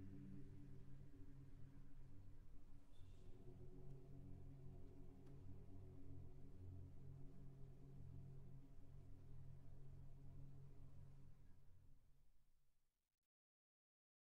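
A large choir sings slowly in low, sustained tones in an echoing hall.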